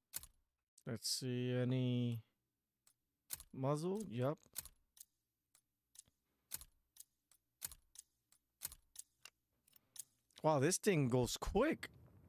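A man speaks into a headset microphone.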